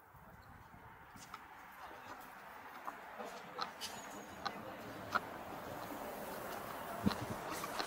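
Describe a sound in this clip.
A car drives past on the street nearby.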